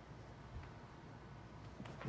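A fire crackles softly in a fireplace.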